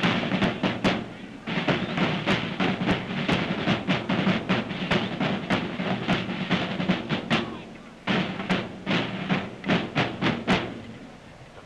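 Snare drums beat sharply in a march rhythm.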